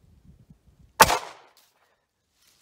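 A single loud gunshot cracks and echoes outdoors.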